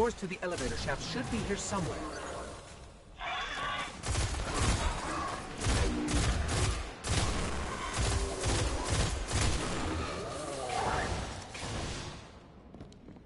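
Rapid gunfire crackles in bursts, with loud blasts.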